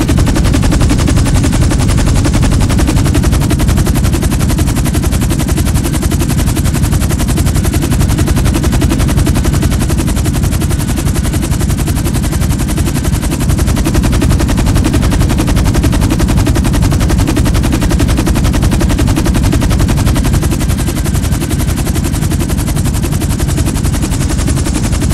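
A twin-rotor helicopter's rotors thud rapidly.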